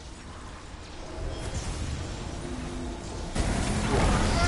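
A blade slashes and strikes with a heavy impact.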